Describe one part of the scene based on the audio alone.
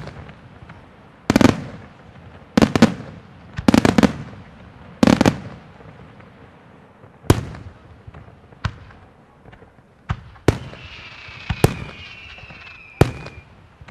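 Firework sparks crackle and fizz after the bursts.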